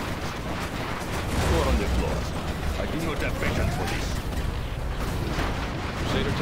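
Rockets whoosh through the air.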